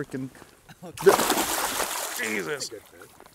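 A fish splashes and thrashes in shallow water.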